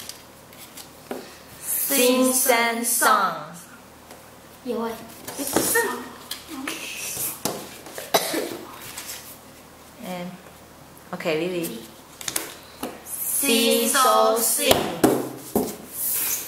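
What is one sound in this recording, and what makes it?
Paper cards tap and slide on a wooden table.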